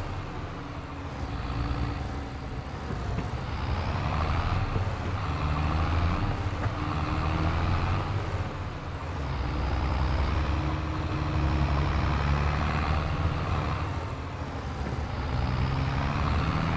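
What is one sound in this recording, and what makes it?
A tractor engine rumbles steadily, rising and falling as it drives along.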